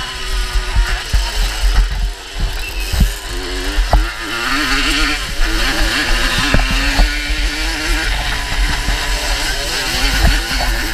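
Another dirt bike engine drones just ahead.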